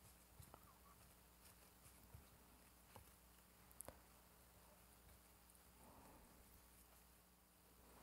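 Fingers tap lightly on a plastic sheet.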